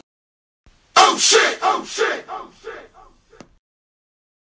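A man exclaims with animated surprise.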